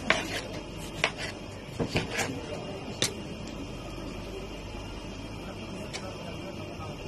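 A knife taps on a cutting board as tomato is sliced.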